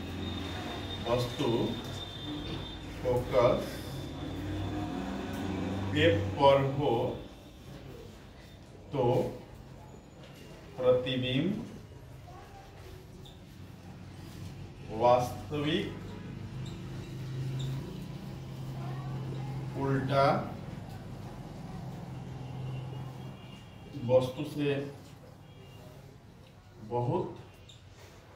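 A man speaks in short phrases.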